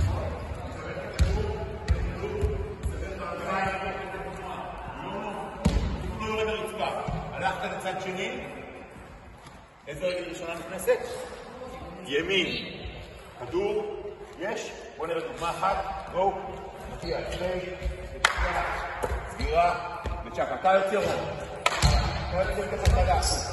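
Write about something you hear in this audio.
A man talks with animation in a large echoing hall.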